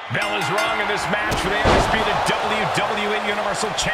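A wrestler slams onto the mat with a heavy thud.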